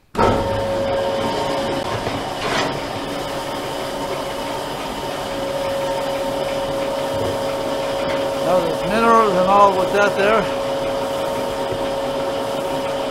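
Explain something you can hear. Grain pours steadily from a chute onto a heap with a continuous hiss.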